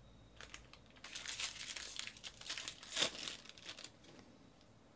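A foil wrapper crinkles and rips open.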